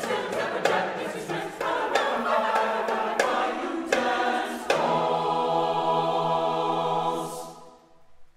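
A choir sings together in a large echoing hall.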